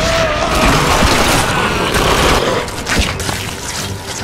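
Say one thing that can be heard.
A heavy blade slices through flesh with a wet squelch.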